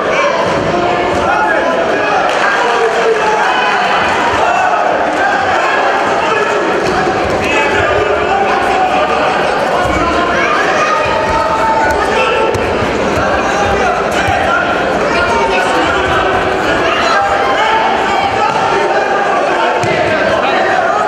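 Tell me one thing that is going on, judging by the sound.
A large crowd chatters and cheers in an echoing hall.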